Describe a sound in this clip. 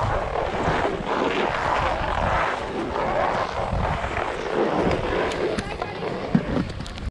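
Wind rumbles against a close microphone.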